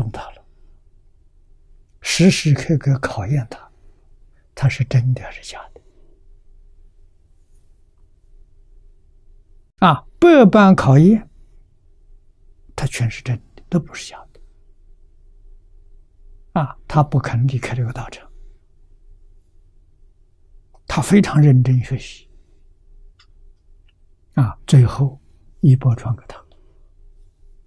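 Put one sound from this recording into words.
An elderly man speaks slowly and calmly into a microphone, in short phrases with long pauses.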